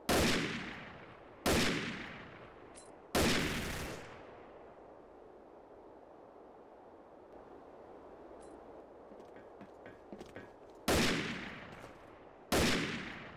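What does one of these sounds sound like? A rifle fires single loud shots that echo away.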